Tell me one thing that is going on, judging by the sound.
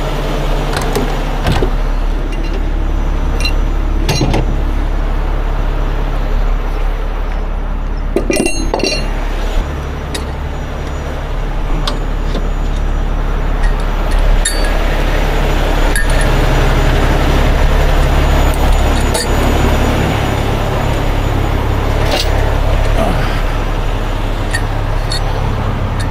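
Metal parts clank and knock as equipment is handled.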